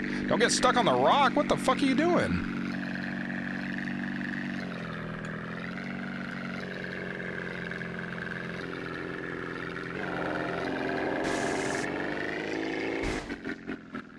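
A propeller plane's engine drones steadily, its pitch shifting slightly.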